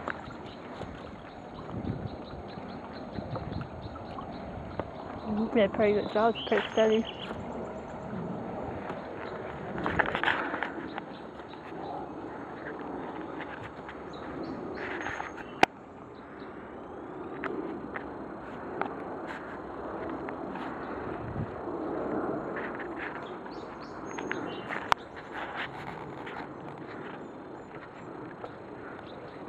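Footsteps crunch slowly on dry leaves and twigs.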